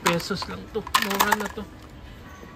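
A plastic plate clatters into a plastic basket.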